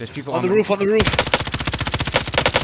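An automatic rifle fires in a rapid burst close by.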